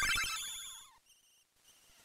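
Chiptune game music plays a short bright jingle and fades.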